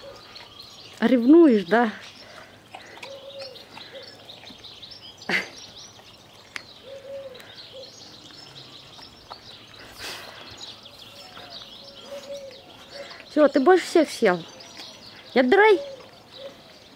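A young lion cub cries out in loud, wavering calls close by.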